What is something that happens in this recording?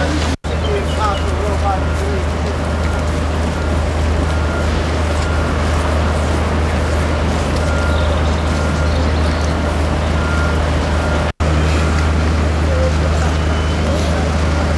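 Many footsteps tramp along a wet road.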